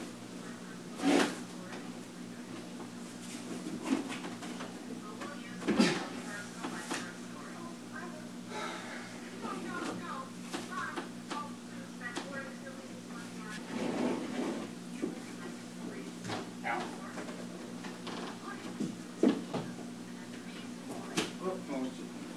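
A heavy wooden cabinet knocks and bumps as it is shifted.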